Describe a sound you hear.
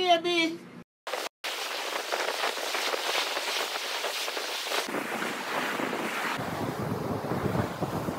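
Waves break and wash onto a beach.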